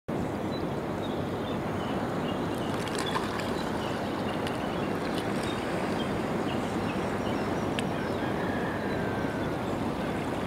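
Water laps gently at a shore.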